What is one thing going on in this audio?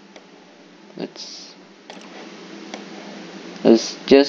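A young man speaks quietly, close to a microphone.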